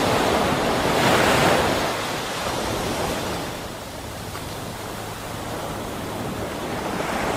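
Water bubbles and swirls underwater.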